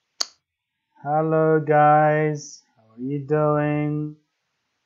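A young man speaks calmly and close to the microphone.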